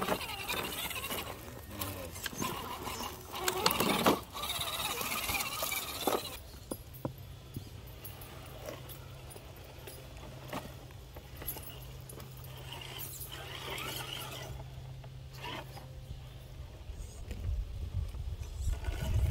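Plastic tyres scrape and knock on stones.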